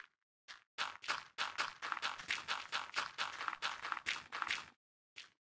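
Footsteps crunch quickly over gravelly ground.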